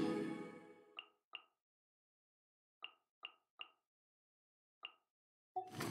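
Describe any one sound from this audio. Soft menu clicks tick several times.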